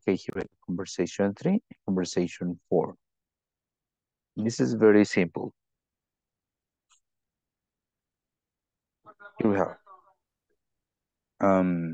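A young man speaks clearly over an online call, in short bursts with pauses.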